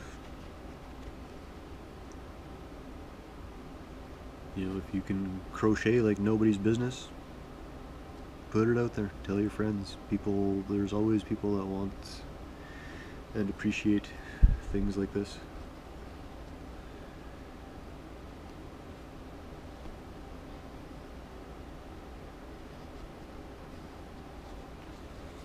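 A needle and thread pull softly through thick fabric.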